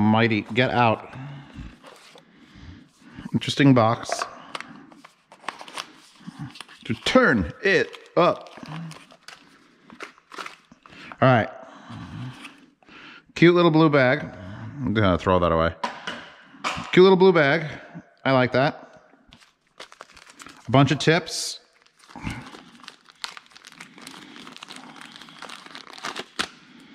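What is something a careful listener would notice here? Plastic packaging crinkles and rustles in hands.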